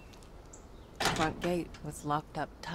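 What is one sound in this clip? A locked metal gate rattles loudly.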